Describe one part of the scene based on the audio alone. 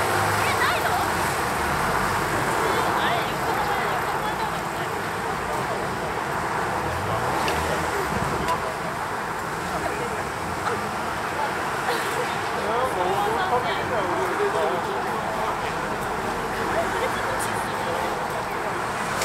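Footsteps scuff on pavement as people walk past.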